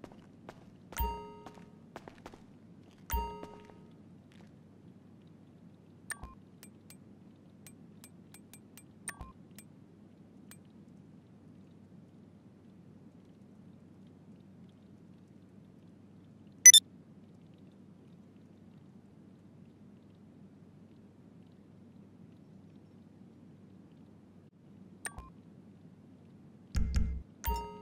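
Short electronic menu blips sound now and then.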